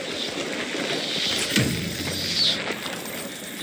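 A crackling burst of sparks flares up.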